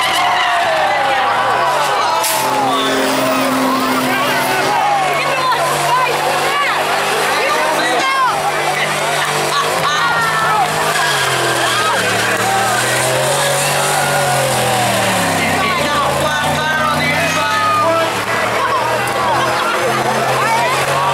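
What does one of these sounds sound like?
Tyres squeal loudly as they spin on the pavement.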